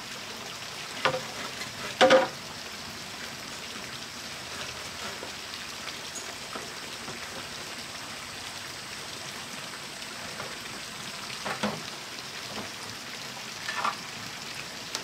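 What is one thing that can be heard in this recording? Wooden boards knock and clatter as they are handled.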